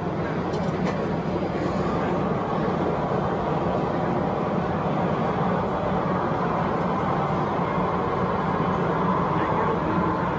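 A model locomotive hums and rumbles steadily along its track.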